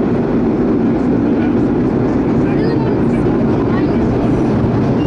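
A subway train rumbles loudly through a tunnel.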